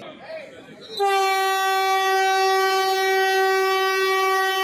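A train horn sounds a loud, steady blast.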